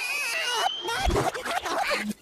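A loud crash hits the ground.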